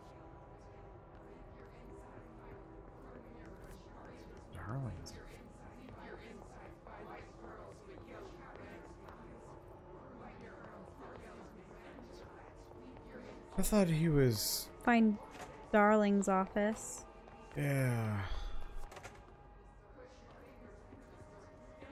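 Quick footsteps patter softly on a carpeted floor.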